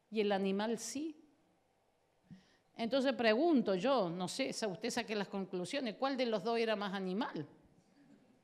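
A woman speaks with animation into a microphone, heard through loudspeakers in a large room.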